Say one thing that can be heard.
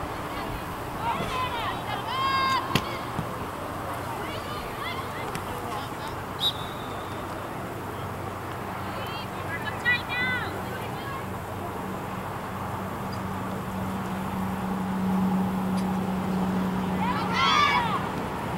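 Players shout to each other across an open field, heard from a distance.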